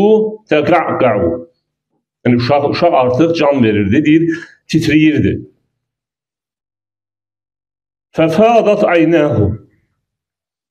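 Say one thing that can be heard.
A middle-aged man speaks calmly into a microphone, reading out in short phrases with pauses.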